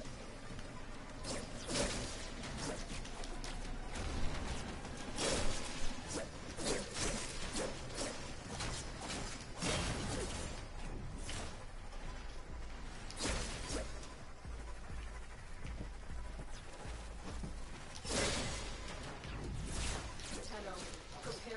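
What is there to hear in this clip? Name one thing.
Energy weapons fire in rapid bursts with crackling blasts.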